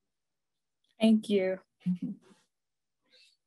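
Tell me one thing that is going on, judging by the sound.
A young woman speaks briefly and warmly over an online call.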